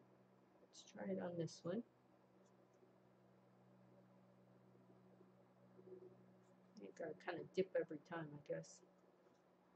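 An elderly woman speaks calmly and close by, in short bursts.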